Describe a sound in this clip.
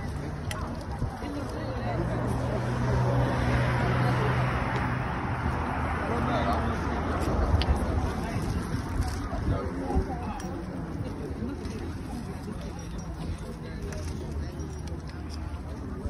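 A crowd of adults chatter nearby outdoors.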